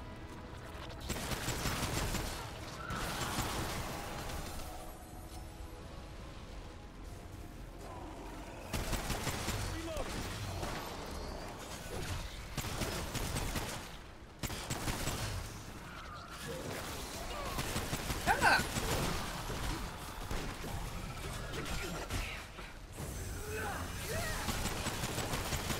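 Pistol shots crack repeatedly.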